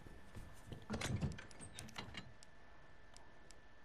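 Soft menu clicks sound as a selection changes.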